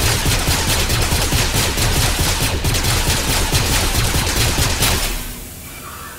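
A lightsaber hums and crackles rapidly as it strikes.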